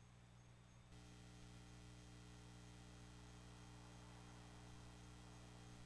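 A handpan rings with soft, steady, sustained notes.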